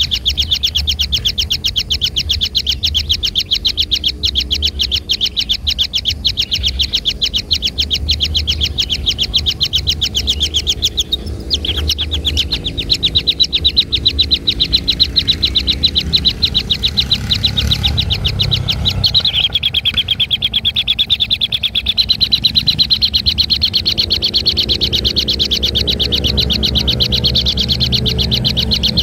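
Kingfisher nestlings beg with rapid, high, pulsing calls.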